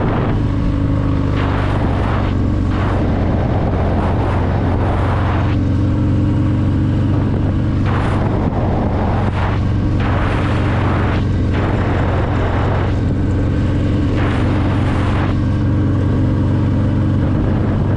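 Wind rushes past loudly and rises and falls in gusts.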